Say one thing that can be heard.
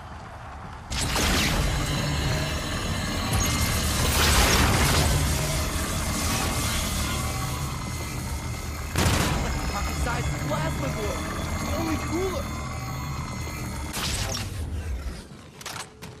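Gunfire blasts in rapid bursts.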